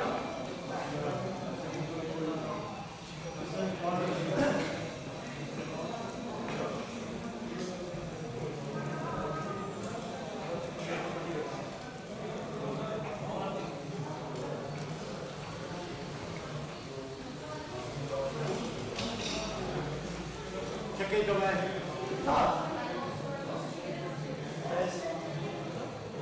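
Several men talk and murmur nearby in an echoing room.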